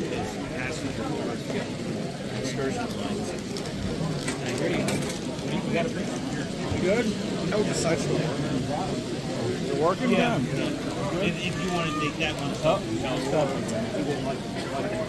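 Adults chatter around the room.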